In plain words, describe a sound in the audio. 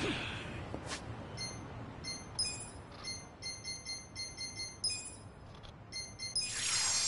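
Short electronic beeps sound as menu items are picked.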